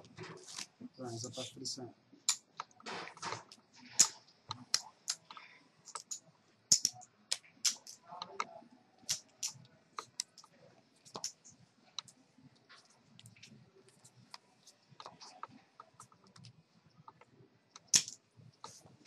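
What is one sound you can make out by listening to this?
Poker chips click and clatter on a table.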